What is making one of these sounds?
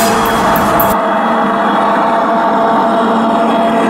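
A model train's motor hums as it rolls along the track.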